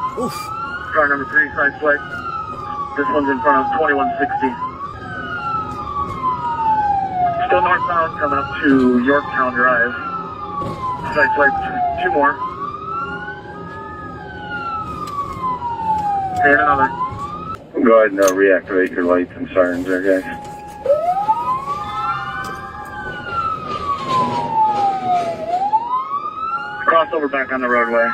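A police siren wails up and down close by.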